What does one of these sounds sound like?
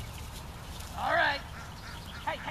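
A dog barks in the distance.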